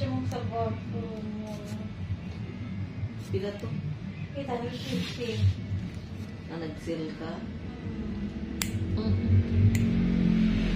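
Nail clippers snip through a toenail with sharp clicks.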